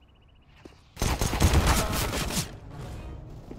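Gunfire crackles in a loud rapid burst.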